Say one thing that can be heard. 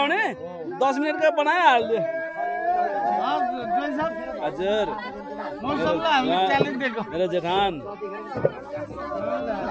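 Several men talk and laugh close by.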